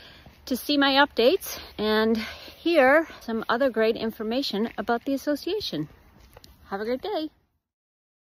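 A middle-aged woman talks close up, outdoors.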